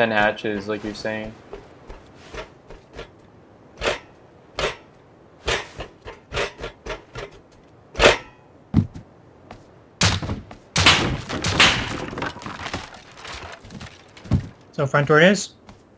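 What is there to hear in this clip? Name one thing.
Footsteps clank on metal flooring.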